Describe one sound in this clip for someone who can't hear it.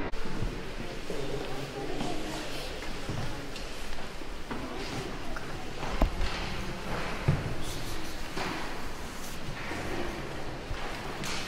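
Several people murmur quietly.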